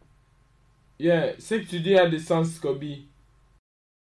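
A second man answers with animation, close to a microphone.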